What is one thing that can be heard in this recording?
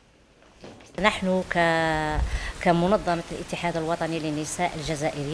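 A middle-aged woman speaks calmly into microphones close by.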